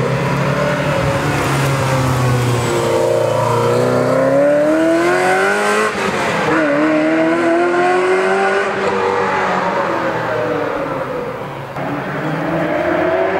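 A V8 sports car accelerates hard away into the distance.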